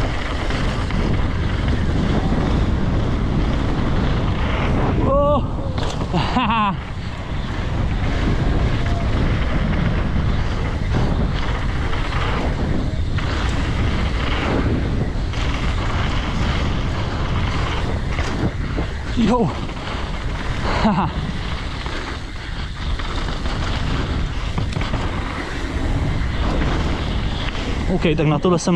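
Mountain bike tyres rumble and crunch on a dirt trail at speed downhill.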